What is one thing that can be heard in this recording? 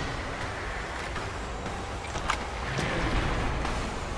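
A metal gate latch clanks and the gate creaks open.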